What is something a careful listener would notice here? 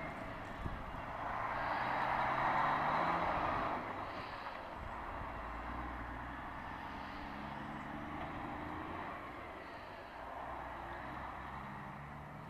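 A heavy truck engine rumbles as it turns and pulls away.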